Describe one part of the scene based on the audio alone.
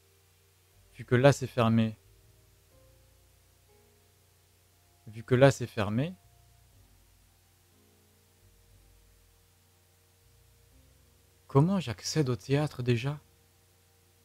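A young man speaks calmly into a close microphone in short bursts.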